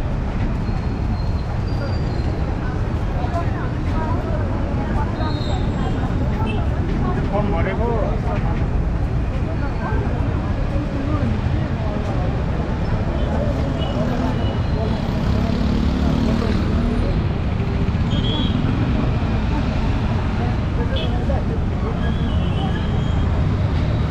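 Dense city traffic rumbles steadily, with motorbike engines buzzing.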